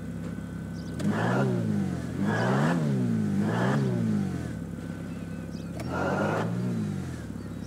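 A car engine revs up and down in bursts.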